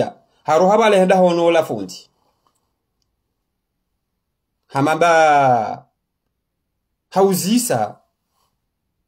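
A man speaks close up in short, calm phrases with pauses between them.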